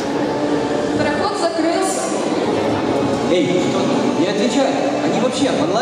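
A young woman speaks through a microphone that echoes in a large hall.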